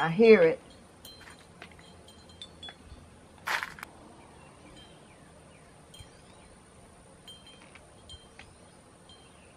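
Small glass pieces click and tap against one another.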